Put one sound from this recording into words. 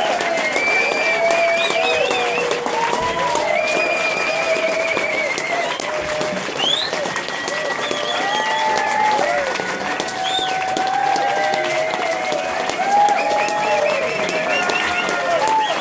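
A crowd cheers and whoops loudly.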